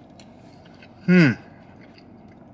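A man hums with pleasure.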